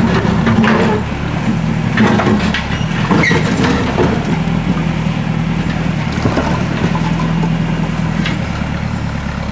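Broken concrete chunks clatter and scrape under a backhoe bucket.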